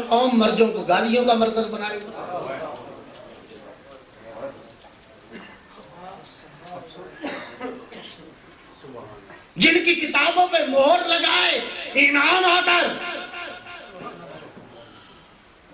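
A man preaches passionately into a microphone, his voice rising to loud, chanting cries in an echoing space.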